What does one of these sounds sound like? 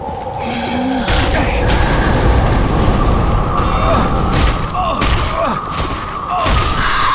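A large creature roars and crashes in a loud fight.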